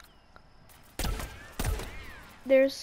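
A gun fires a few quick shots.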